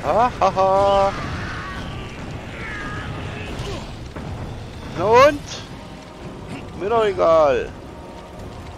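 A monster roars and shrieks.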